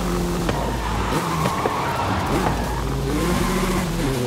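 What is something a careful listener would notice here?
Tyres squeal as a car slides through a bend.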